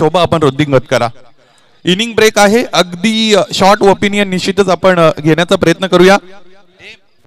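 A man speaks loudly into a microphone, heard through loudspeakers.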